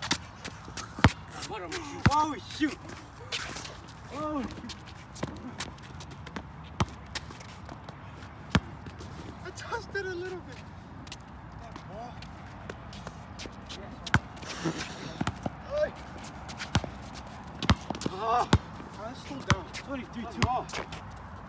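A basketball bounces sharply on concrete.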